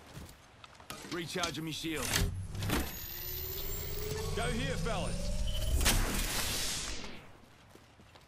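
A shield recharge device hums and whirs electronically as it charges.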